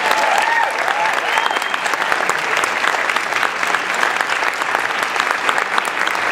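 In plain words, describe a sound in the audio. A jazz band plays a lively tune with saxophones and brass.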